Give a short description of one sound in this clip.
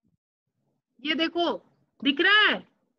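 A woman speaks briefly and clearly into a microphone.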